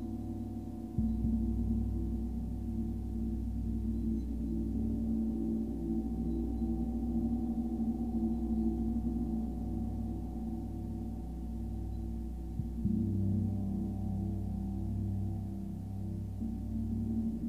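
Soft mallet strikes start new swells of ringing.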